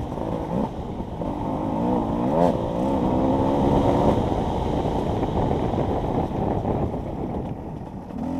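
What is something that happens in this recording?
Tyres crunch over a bumpy dirt track.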